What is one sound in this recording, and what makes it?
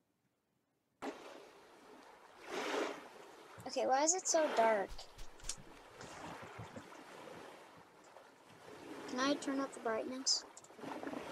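Waves wash softly onto a shore.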